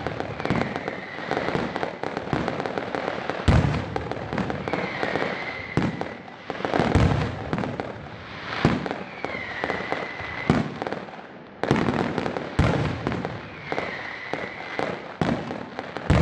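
Rockets whistle as they shoot upward.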